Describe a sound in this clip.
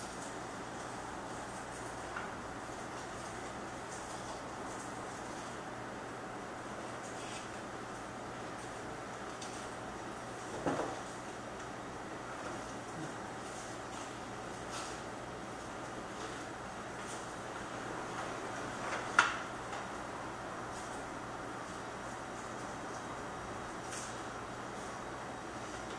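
A man reads aloud steadily nearby.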